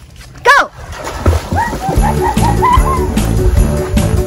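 Water splashes loudly as children swim and dive.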